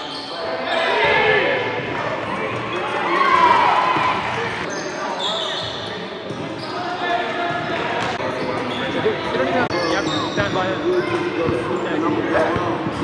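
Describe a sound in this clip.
Sneakers squeak on a hardwood gym floor.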